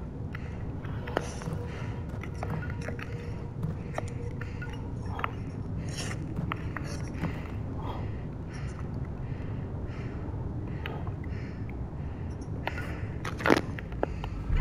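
Ice axes strike hard ice again and again.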